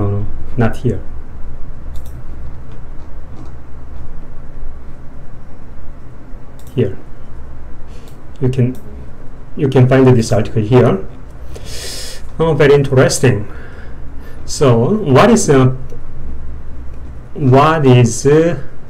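A man speaks calmly in short phrases, close to a microphone.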